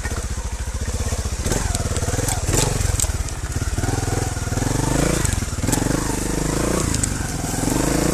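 Tyres knock and crunch over rocks and dirt.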